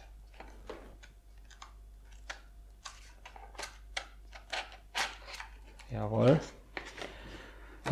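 Stiff plastic packaging creaks and clicks as hands pull at it.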